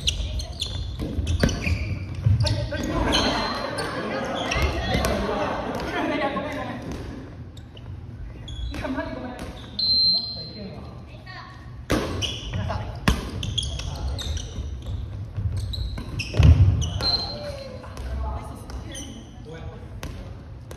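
Young men and women chatter and call out to each other in a large echoing gym.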